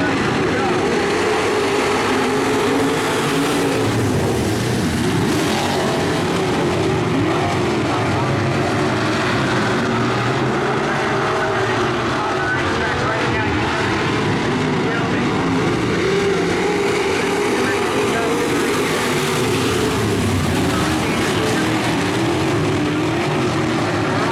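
Engines rev up and down with shifting, bending pitch.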